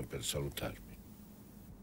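A middle-aged man asks a question quietly and closely.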